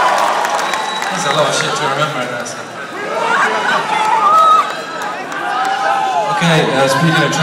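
A crowd cheers and screams loudly in a large arena.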